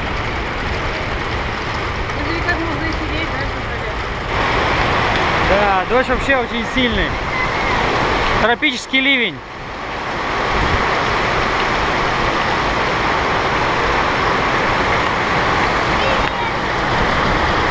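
Heavy rain drums steadily on a metal roof.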